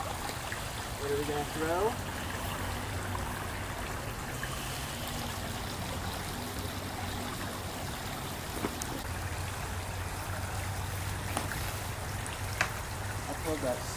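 A small stream trickles over stones outdoors.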